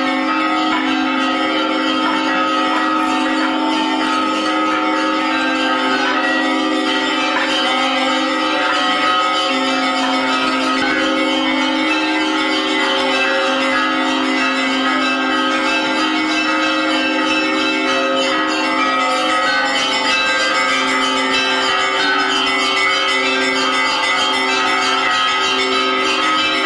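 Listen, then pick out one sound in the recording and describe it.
A group of men and women sing together slowly in a steady chant.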